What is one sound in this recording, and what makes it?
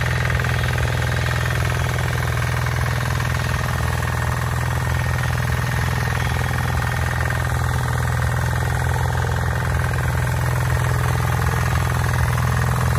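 Tiller blades churn through dry soil.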